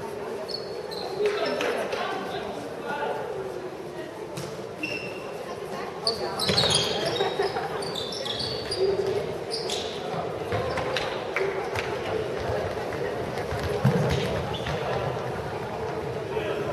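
Players shout and call out in a large echoing hall.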